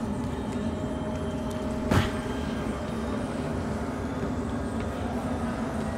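Footsteps thud on wooden stairs.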